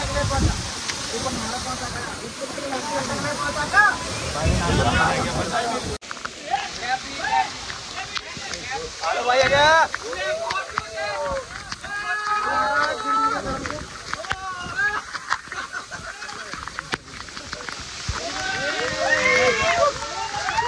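Young men talk and shout excitedly close by, outdoors.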